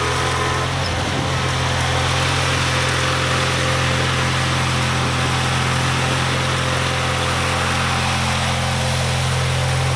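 A lawn tractor engine drones steadily nearby.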